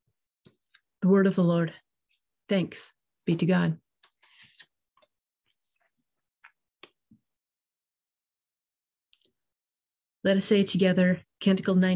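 An adult woman speaks calmly over an online call, in short bursts with pauses.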